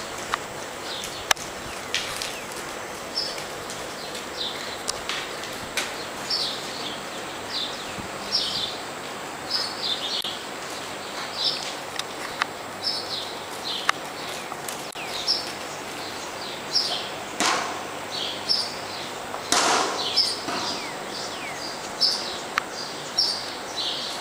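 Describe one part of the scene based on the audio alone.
A horse's hooves thud softly on soft ground at a steady trot.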